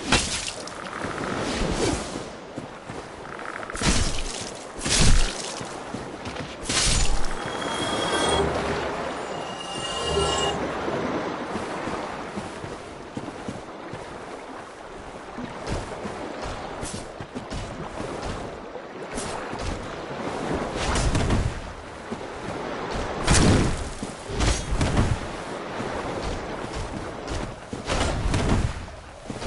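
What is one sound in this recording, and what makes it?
Armour clanks with hurried footsteps.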